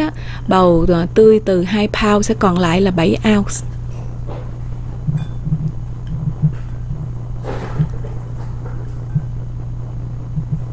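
Soft slices of vegetable rustle and squelch as a hand tosses them in a bowl.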